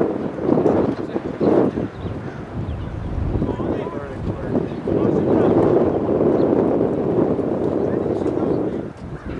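Young players call out to each other in the distance across an open field.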